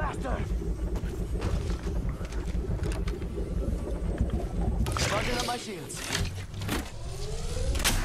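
An electronic device hums and charges up with a rising whir.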